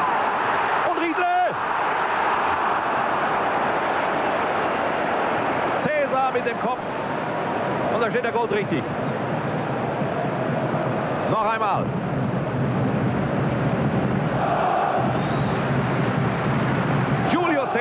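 Fans in a stadium chant and sing loudly.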